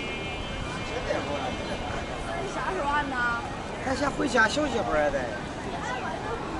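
Men and women talk casually nearby.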